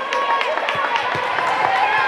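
A volleyball bounces on the floor.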